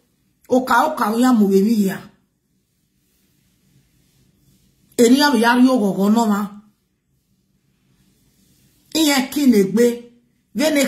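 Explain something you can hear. A woman speaks with feeling close to a microphone, in short bursts with pauses.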